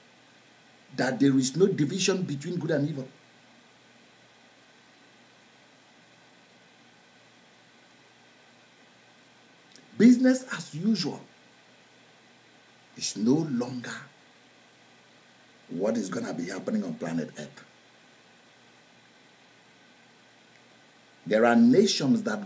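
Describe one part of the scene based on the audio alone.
A middle-aged man speaks with animation in bursts, close to a microphone, with long pauses between.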